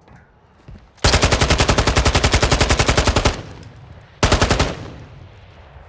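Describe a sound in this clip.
Rapid automatic gunfire rattles loudly in bursts.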